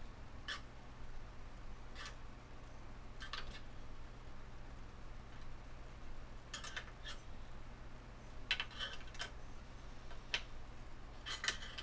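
Metal parts click and clink.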